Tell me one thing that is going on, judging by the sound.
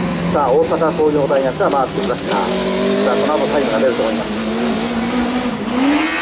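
A racing engine revs hard, rising and falling in pitch as a vehicle speeds past outdoors.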